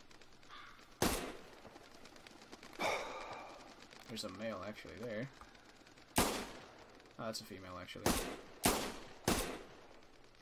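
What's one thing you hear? A rifle fires loud, sharp shots, one at a time.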